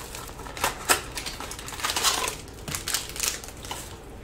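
Plastic packaging crinkles as it is pulled open.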